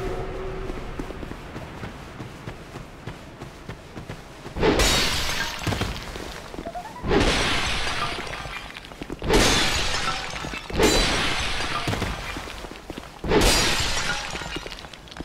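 Footsteps run over grass and stone.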